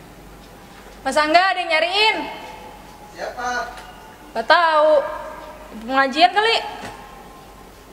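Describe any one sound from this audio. An older woman calls out loudly, close by.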